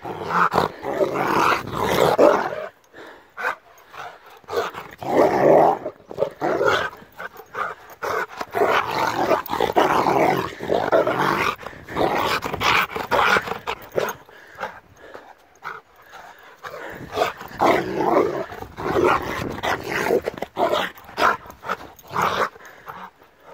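A large dog growls playfully up close.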